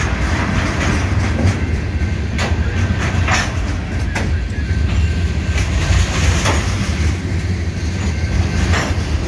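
Train wheels clack and squeal over the rail joints.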